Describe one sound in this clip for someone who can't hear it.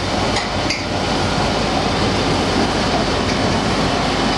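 Metal parts click and knock sharply.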